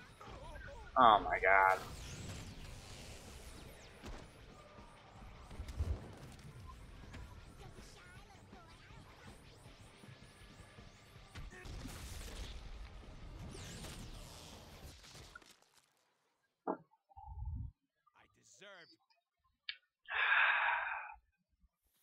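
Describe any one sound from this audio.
A young man talks close to a microphone.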